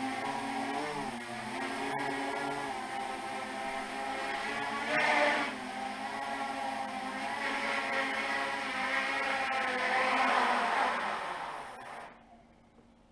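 A small drone's propellers whine and buzz steadily, then wind down and stop.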